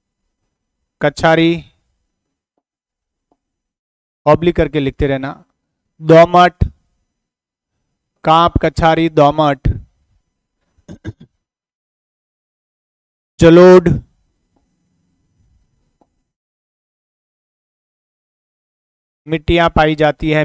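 A middle-aged man lectures through a clip-on microphone, in short bursts with pauses.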